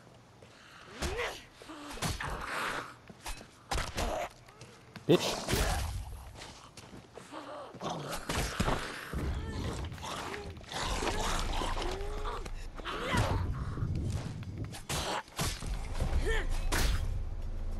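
Zombies groan and snarl up close.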